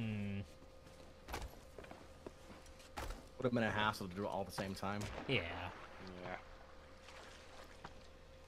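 Sea water sloshes and splashes close by.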